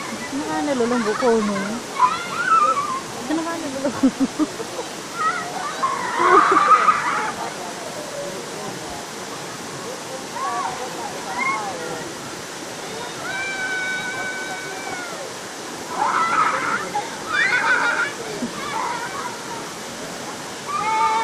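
Young girls chatter and shout with excitement.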